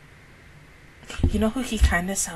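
A young woman makes loud vocal sounds close into a microphone.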